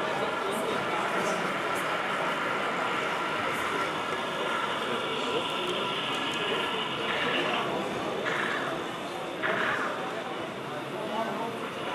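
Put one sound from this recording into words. A crowd of adults chatters in the background.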